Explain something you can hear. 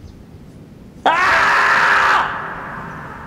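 A marmot lets out a long, loud, piercing scream.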